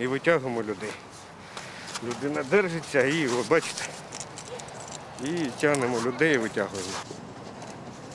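A middle-aged man speaks calmly into a microphone outdoors.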